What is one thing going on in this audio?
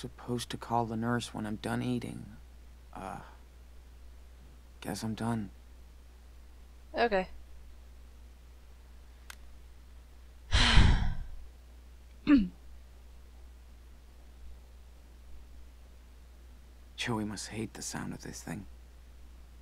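A young woman speaks calmly and briefly into a close microphone.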